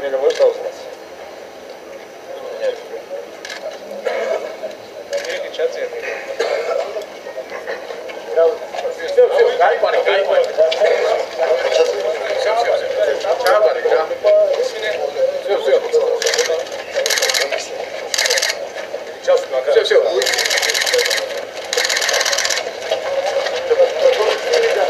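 A crowd of people talks and shouts nearby, outdoors.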